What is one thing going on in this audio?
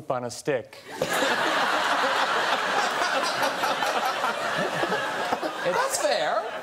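A young man laughs heartily.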